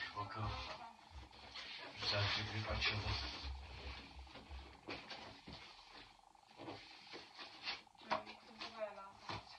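A cardboard box rustles and bumps as it is handled.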